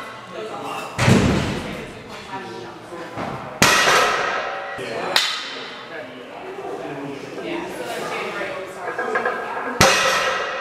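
Heavy barbell plates knock against the floor.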